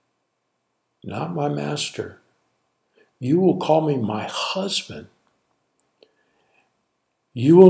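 An elderly man speaks calmly and expressively into a close microphone, pausing between phrases.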